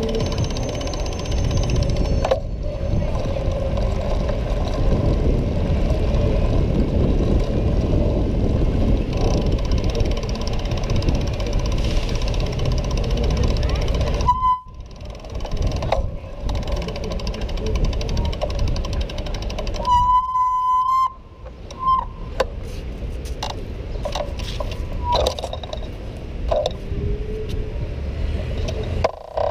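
Skateboard wheels rumble and clatter over rough paving stones.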